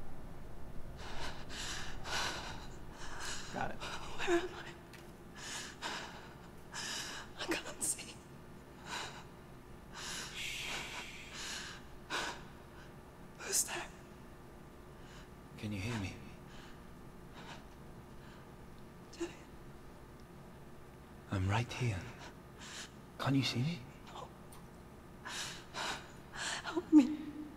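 A young woman speaks in a frightened, breathy voice.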